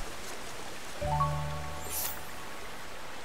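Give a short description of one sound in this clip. A bright electronic chime sounds as a menu opens.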